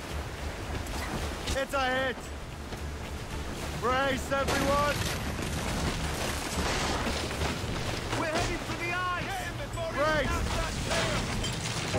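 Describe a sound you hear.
Waves slosh and lap against a small wooden boat.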